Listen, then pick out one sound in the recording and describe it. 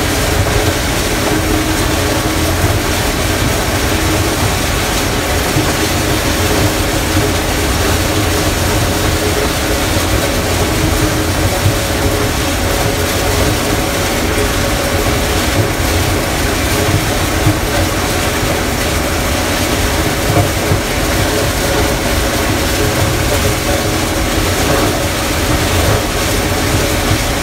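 A harvester engine roars steadily from inside the cab.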